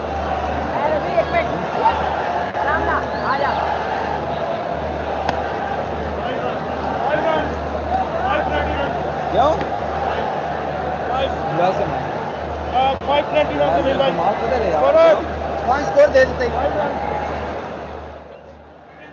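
A woman speaks steadily over an online call.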